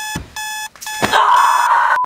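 A woman cries out in alarm.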